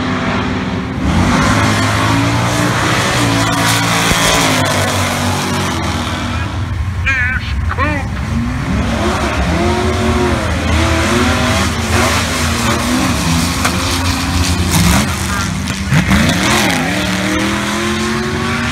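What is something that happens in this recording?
Race cars accelerate hard and speed away down the track.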